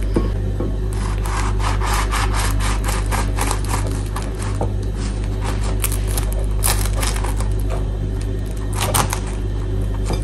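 A knife saws through a crusty bagel with a rasping crunch.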